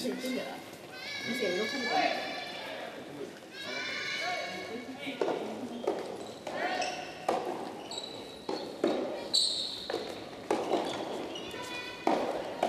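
Young women shout out calls from a distance.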